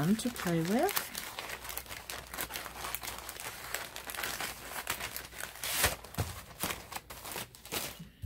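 A plastic bag crinkles as hands handle it.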